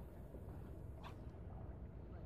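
A fishing rod swishes through the air.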